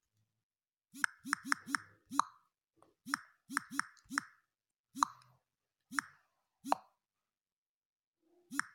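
Phone keyboard taps click one at a time.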